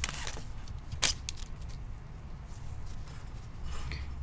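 Trading cards slide and click against each other.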